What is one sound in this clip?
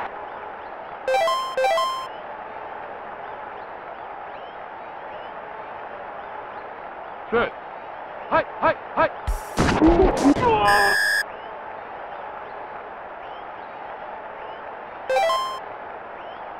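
Short electronic beeps chime as menu choices are made.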